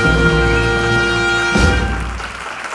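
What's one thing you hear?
A jazz band plays a final chord that rings out.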